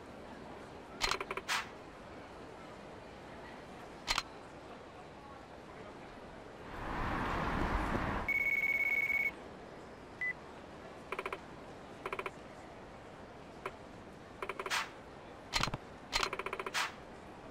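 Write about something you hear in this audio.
Short electronic blips chime in quick bursts.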